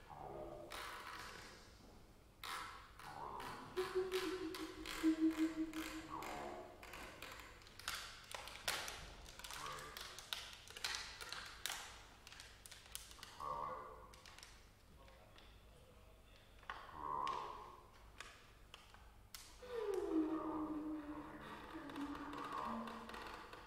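Musicians play percussion and electronic sounds in a large echoing hall.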